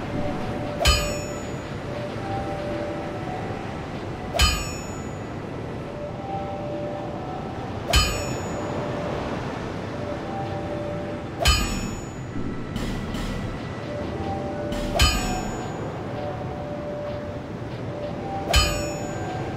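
Short menu blips sound as a selection moves.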